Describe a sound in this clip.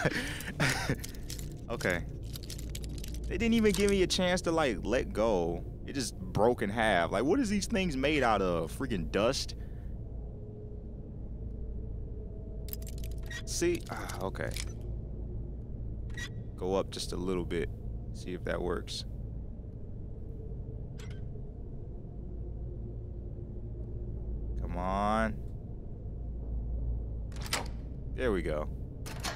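A metal lockpick scrapes and clicks inside a lock.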